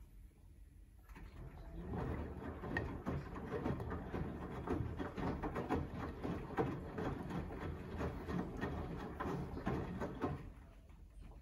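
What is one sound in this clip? Wet laundry sloshes and tumbles in a washing machine drum.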